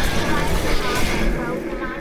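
An energy blast bursts with a rushing whoosh.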